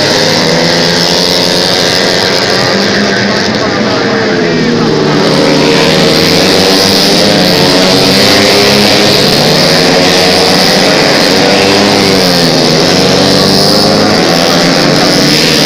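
Motorcycle engines roar and whine loudly as bikes race past up close.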